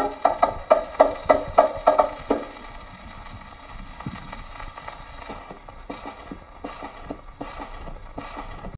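An old gramophone plays a scratchy record of lively music with a crackling, hissing surface.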